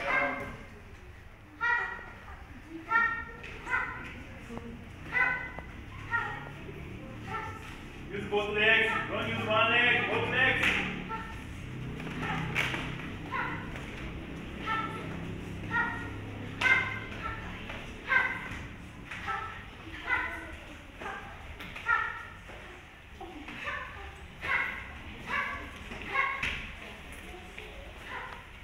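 Children shout sharply again and again as they spar.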